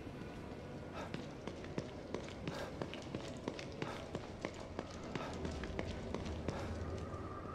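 Footsteps tread on a hard floor at a quick pace.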